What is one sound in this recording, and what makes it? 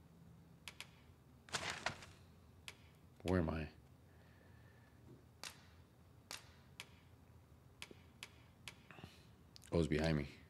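Game menu clicks tick softly.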